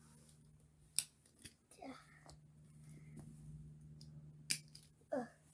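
A plastic buckle clicks shut.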